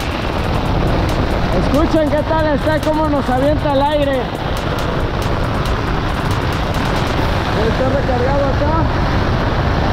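Wind buffets and rumbles against tent fabric.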